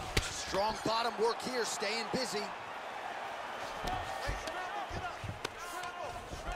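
Punches thud dully against a body.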